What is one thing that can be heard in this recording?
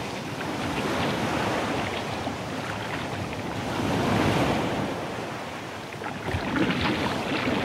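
Wind gusts loudly across open water.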